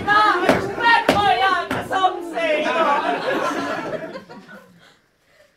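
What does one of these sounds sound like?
A man shouts loudly and theatrically on a stage, his voice echoing.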